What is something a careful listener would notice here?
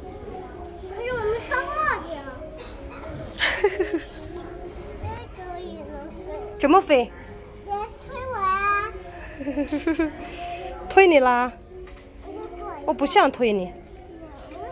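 A little girl speaks close by in a high, playful voice.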